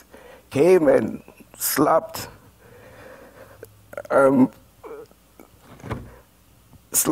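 A man preaches with animation through a microphone.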